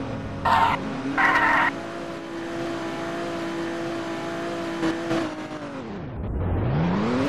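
A car engine hums steadily, drops low as the car slows, then revs up again.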